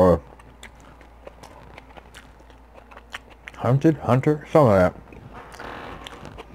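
A man chews food close to a microphone with soft wet clicks.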